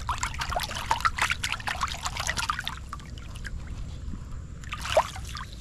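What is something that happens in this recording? Shallow water splashes and gurgles over rocks close by.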